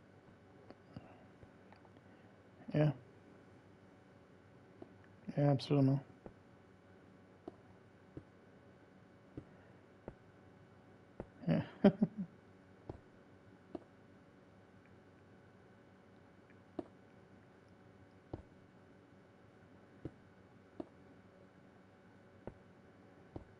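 Stone blocks are placed with soft, short thuds, one after another.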